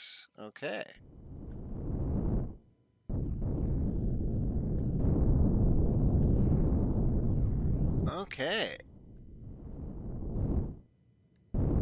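A spacecraft's thrusters roar steadily, rising and falling.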